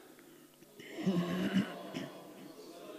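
A man clears his throat loudly into a microphone.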